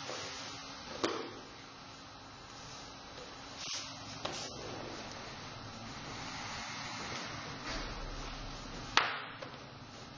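A cloth belt snaps sharply as it is pulled tight.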